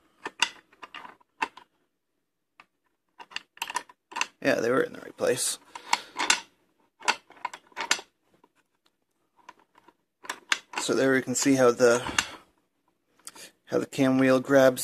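A metal lock mechanism clicks and clacks as it is worked by hand.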